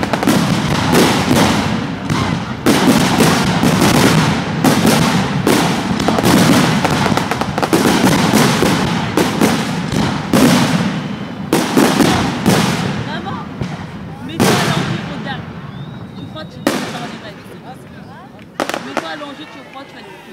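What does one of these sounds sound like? Fireworks crackle and sizzle as sparks fall.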